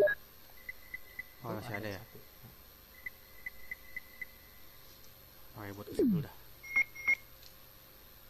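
Short electronic beeps chirp as a game menu cursor moves.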